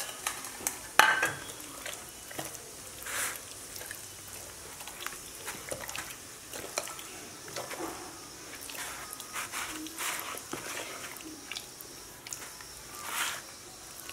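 A raw chicken bumps against a plastic bowl.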